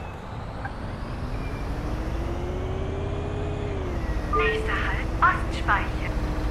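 A bus engine whines higher as the bus pulls away.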